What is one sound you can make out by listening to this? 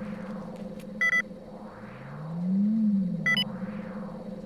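Electronic beeps chirp twice.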